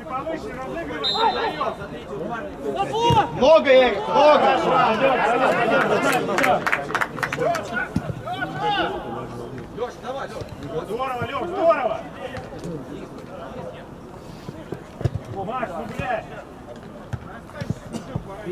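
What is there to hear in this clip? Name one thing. Men shout to each other outdoors across an open field.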